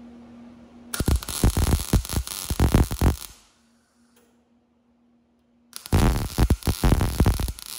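An electric welder crackles and buzzes in bursts.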